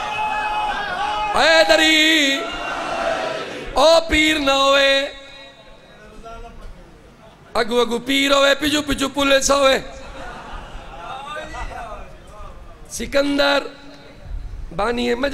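A man sings loudly into a microphone, heard through loudspeakers in an echoing hall.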